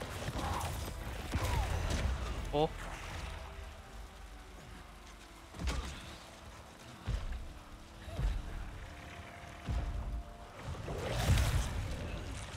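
Heavy blows thud in a fight.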